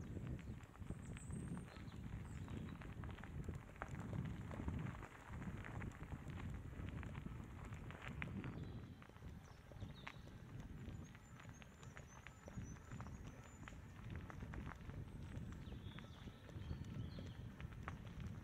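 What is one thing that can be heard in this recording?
Birds chirp in the distance.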